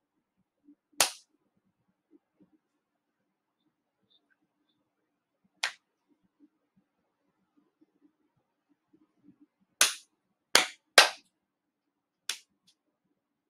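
A young boy claps his hands in a slow rhythm.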